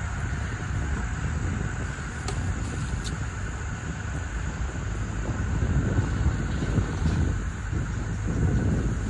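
A truck's engine rumbles low as it drives slowly along a rough track.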